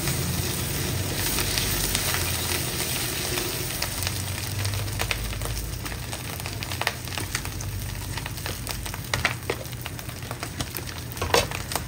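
A wooden spatula scrapes and taps against a wok.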